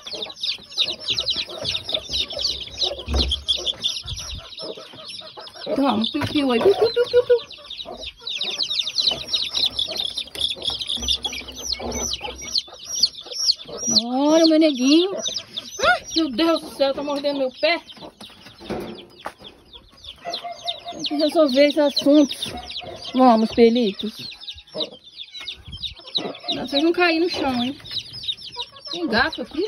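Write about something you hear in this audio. Many chicks peep shrilly and constantly close by.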